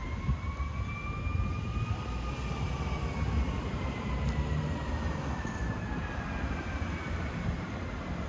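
Cars drive slowly past on a street nearby.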